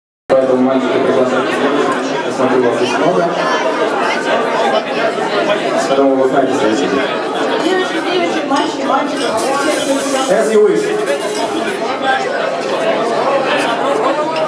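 A live rock band plays loudly.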